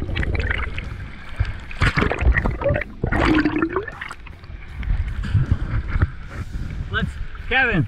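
Choppy waves slosh and splash close by.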